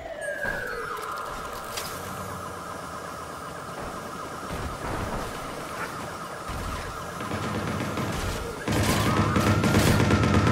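A small drone whirs steadily.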